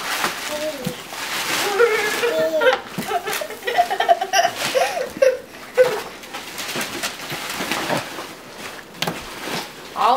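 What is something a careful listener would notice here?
Cardboard and wrapping paper rustle and crinkle.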